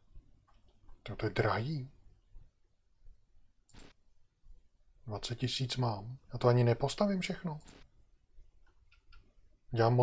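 A middle-aged man talks calmly into a close microphone, in short bursts.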